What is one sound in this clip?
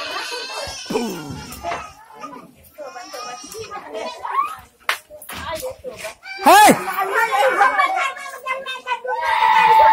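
Women shout and argue loudly nearby.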